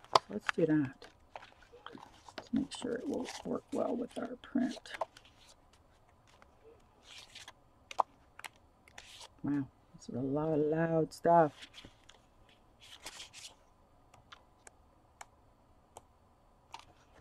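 Paper rustles as pages are turned and handled.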